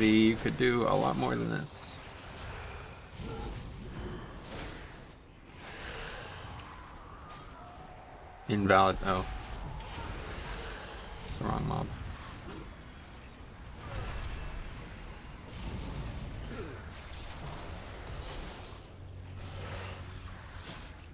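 Magical spell effects whoosh and crackle in a battle.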